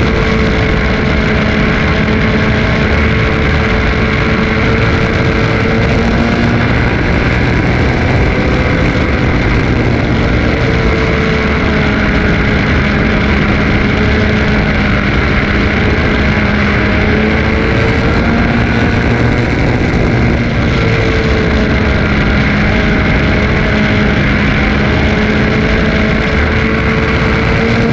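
A dirt-track race car's engine roars at full throttle from inside the cockpit, rising and falling in pitch through the turns.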